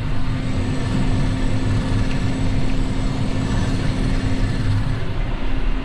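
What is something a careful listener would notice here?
A disc harrow rattles through the soil behind a tractor.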